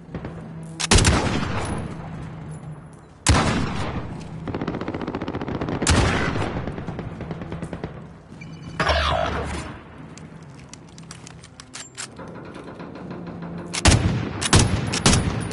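Gunshots bang loudly now and then, each followed by a ringing echo.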